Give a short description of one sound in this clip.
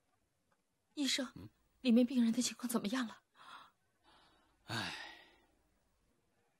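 A man asks a question in a calm voice.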